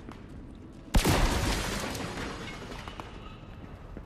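A loud crash of shattering ice bursts out, then fades.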